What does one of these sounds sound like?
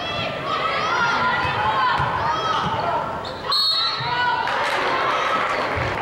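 Basketball players' sneakers squeak on a hardwood court.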